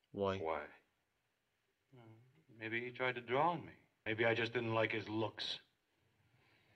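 A man speaks calmly, heard from a recording.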